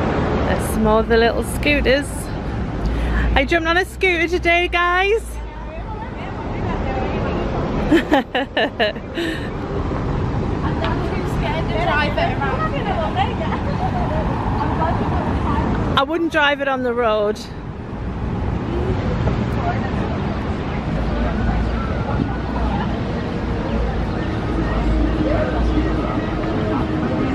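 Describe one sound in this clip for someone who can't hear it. Traffic hums steadily on a nearby city street.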